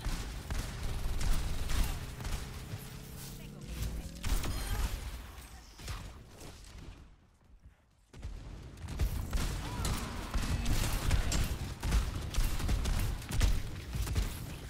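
Shotguns fire in rapid bursts.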